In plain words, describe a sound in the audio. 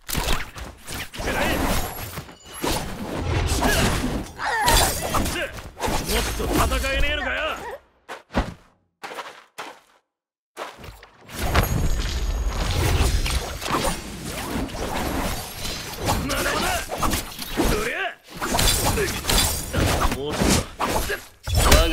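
Swords swing and clash with sharp metallic swishes.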